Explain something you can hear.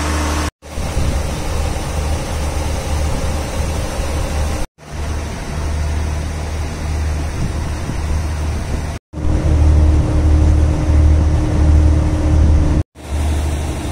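A train engine idles with a low, steady hum.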